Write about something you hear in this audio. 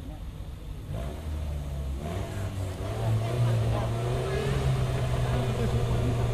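A car engine rumbles steadily as a car approaches.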